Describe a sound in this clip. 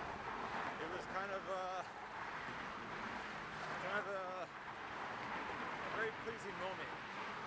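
Wind rushes steadily over a microphone outdoors.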